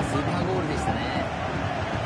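A football is struck with a thump.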